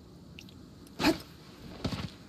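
A character jumps with a sudden whoosh.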